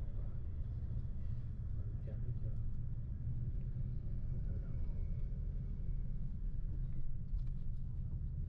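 Wind rumbles steadily, as if heard while riding outdoors.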